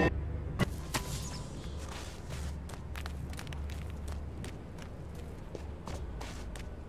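Footsteps crunch steadily on snowy ground.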